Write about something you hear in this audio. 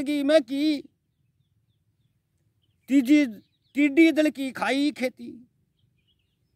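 A middle-aged man speaks close up with animation, in short bursts.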